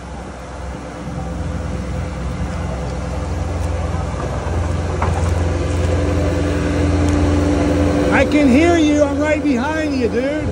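A skid steer loader's diesel engine rumbles steadily nearby.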